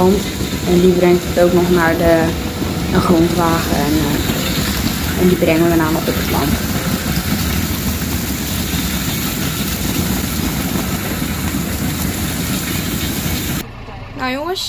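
A conveyor belt rumbles and rattles steadily.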